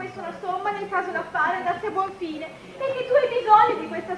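A woman speaks in reply.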